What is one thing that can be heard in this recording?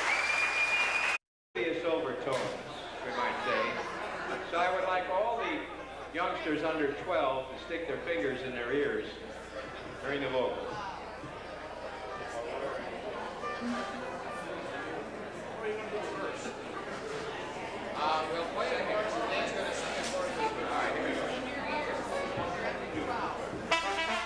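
A jazz band plays with horns and a clarinet.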